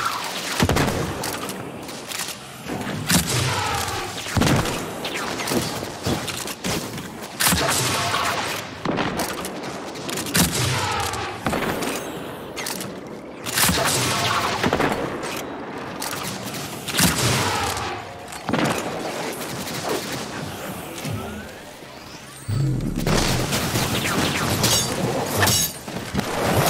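Video game gunfire goes off in bursts.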